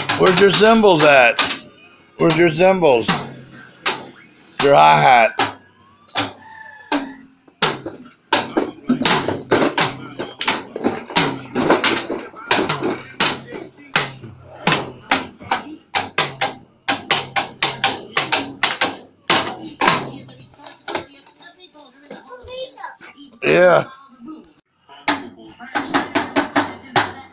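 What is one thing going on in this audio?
Plastic toy sticks clack and bang against each other and a bucket.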